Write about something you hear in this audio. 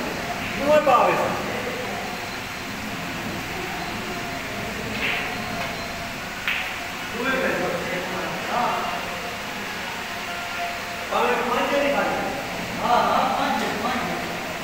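Young men talk and call out nearby.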